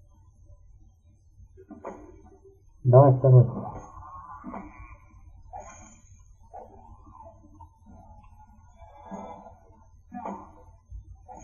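Blades swing and strike in a fight.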